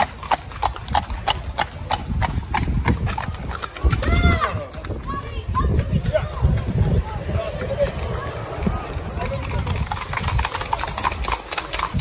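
Horse hooves clop quickly on a paved road.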